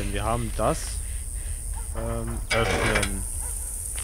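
A metal cabinet door swings open with a clank.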